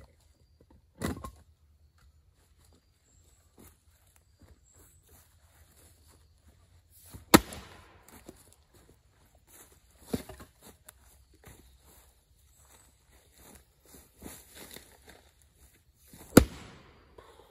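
An axe strikes a log with sharp, loud cracks.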